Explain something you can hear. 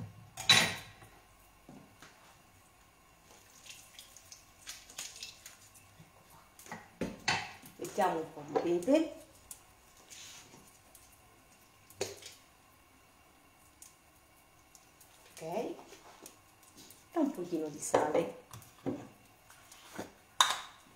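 Utensils clink and knock against dishes.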